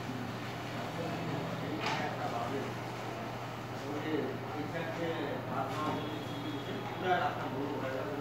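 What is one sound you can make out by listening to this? A man talks some distance away.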